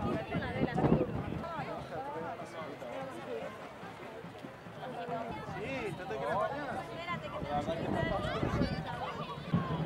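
Small waves lap against rocks.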